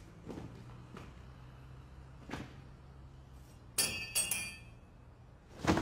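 Footsteps fall slowly on wet pavement.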